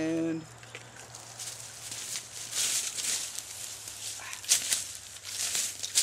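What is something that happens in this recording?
Leaves rustle and twigs crackle as a man moves about.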